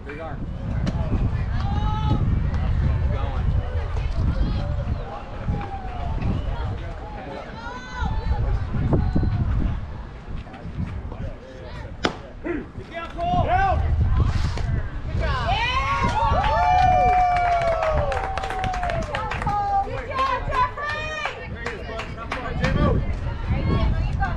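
Young girls cheer and chant loudly from nearby.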